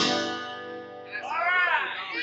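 A guitar chord rings out and fades.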